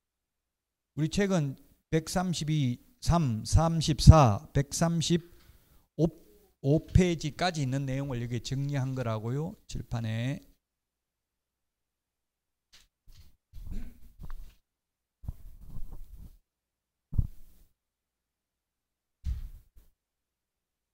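A middle-aged man speaks with animation into a handheld microphone.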